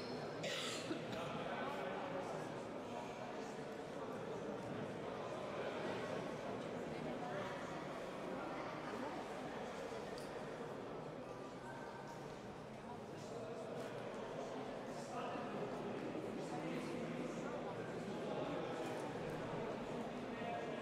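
A man talks to a group with animation.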